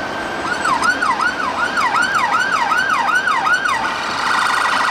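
An ambulance siren wails in quick rising and falling sweeps.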